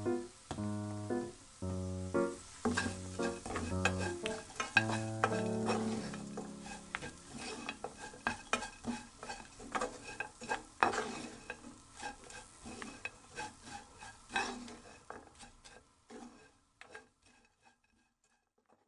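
A wooden spatula scrapes and clatters against a frying pan.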